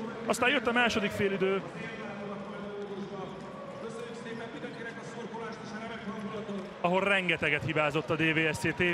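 A large crowd chants and cheers in an echoing arena.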